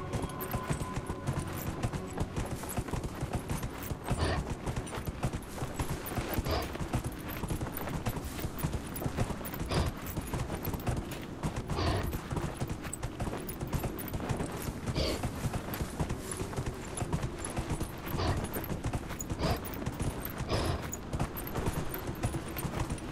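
Hooves pound steadily on the ground as a horse gallops.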